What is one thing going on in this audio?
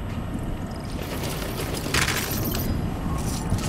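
A heavy metal door slides open.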